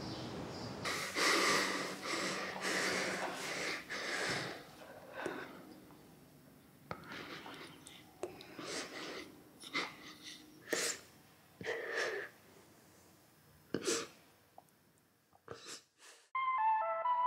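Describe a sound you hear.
A young girl sobs and whimpers close by.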